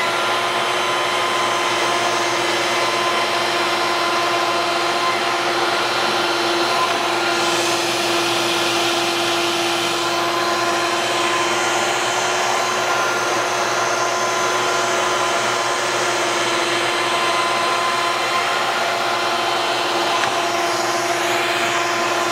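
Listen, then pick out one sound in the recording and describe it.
A router whines loudly and steadily as it cuts through wood.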